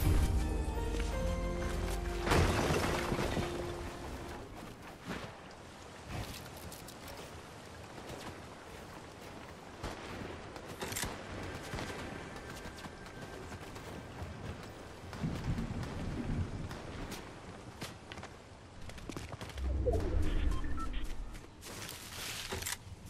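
Footsteps thud on wooden floors and roof tiles.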